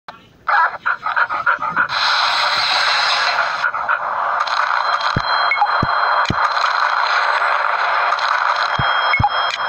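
Upbeat game music plays.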